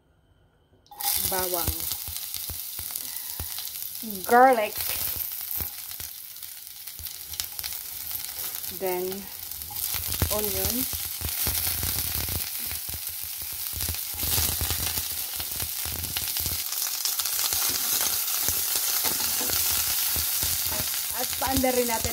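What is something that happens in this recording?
Garlic sizzles loudly in hot oil in a pan.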